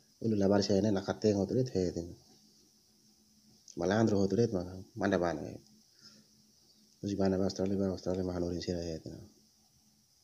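A man speaks calmly, close to a phone's microphone.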